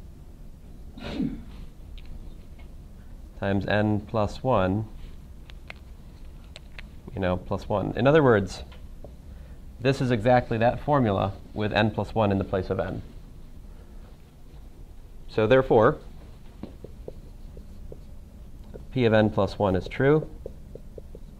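A man speaks calmly and clearly, in short phrases with pauses.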